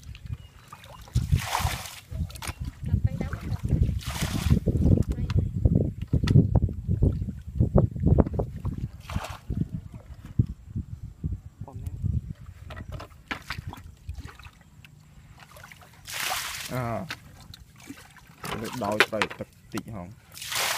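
Hands scoop and splash in shallow muddy water.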